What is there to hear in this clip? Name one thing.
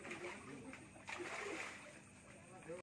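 A hooked fish splashes at the water's surface.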